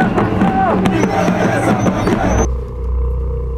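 Drums beat loudly.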